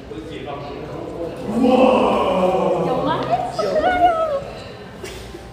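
A young woman talks with animation nearby.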